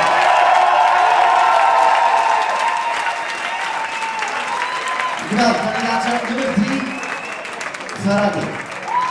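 Pop music plays loudly over loudspeakers in a large hall.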